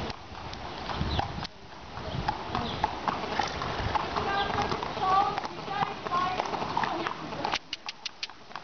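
Horse hooves thud slowly on packed dirt.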